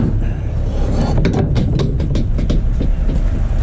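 Glass bottles and rubbish clatter against metal.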